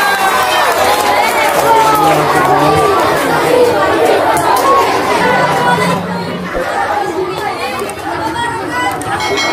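A large crowd of children chatters and calls out loudly.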